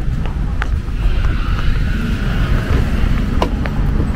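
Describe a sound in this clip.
Footsteps tap on stone steps as a man climbs them.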